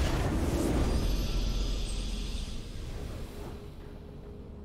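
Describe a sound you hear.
A bright victory fanfare from a video game swells and then fades away.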